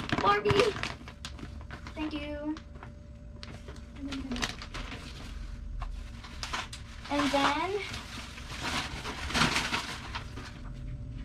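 A plastic bag crinkles and rustles.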